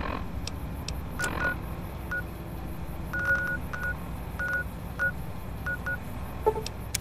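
A handheld electronic device beeps and clicks in short bursts.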